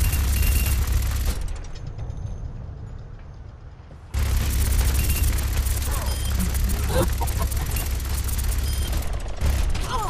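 A heavy rotary gun fires in rapid, rattling bursts.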